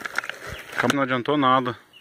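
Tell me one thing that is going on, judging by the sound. A plastic bag rustles as a hand pulls at it.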